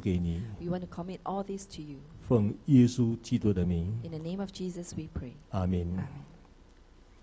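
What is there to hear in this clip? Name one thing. A woman speaks calmly through a microphone in an echoing hall.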